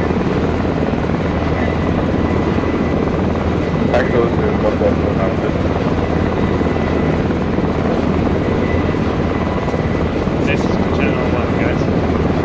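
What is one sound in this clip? A vehicle engine rumbles steadily from inside the cabin.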